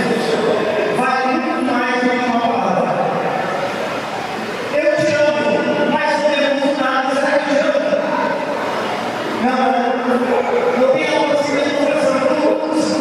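A middle-aged man speaks with animation into a microphone over loudspeakers in a large echoing hall.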